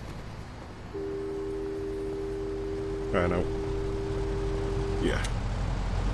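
A telephone tone hums steadily.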